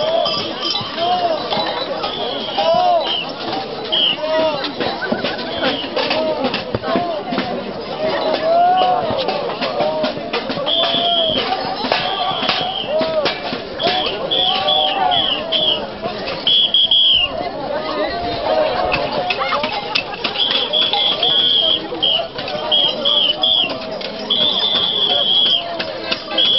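Many bells clang and jingle loudly.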